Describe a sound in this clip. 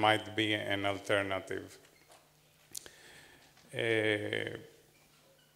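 A man speaks calmly into a microphone, heard through a loudspeaker in a room.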